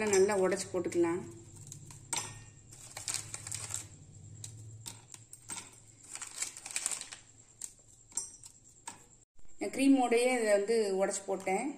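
Biscuit pieces clink into a metal jar.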